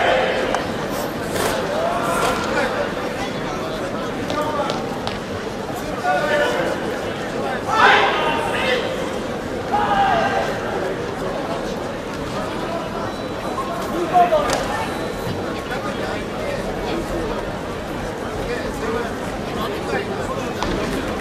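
Uniforms snap and bare feet stamp on a mat.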